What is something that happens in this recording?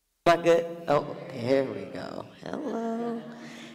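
A woman speaks with animation.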